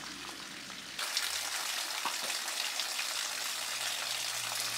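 Water trickles and splashes steadily from a stone basin into a pool.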